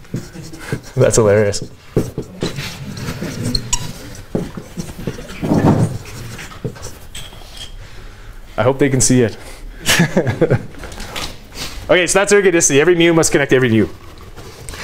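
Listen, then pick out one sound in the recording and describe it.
A man speaks clearly in a large room, lecturing with animation.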